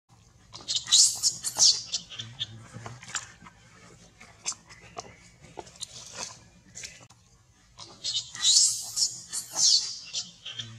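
A baby macaque screeches and squeals in distress.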